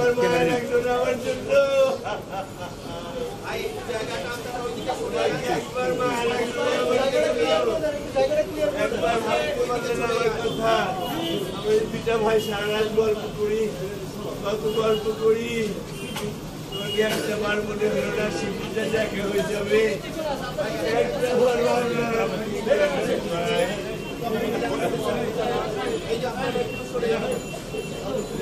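A crowd of men and women talk and shout over one another close by.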